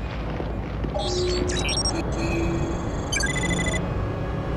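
Electronic scanner tones beep and chirp.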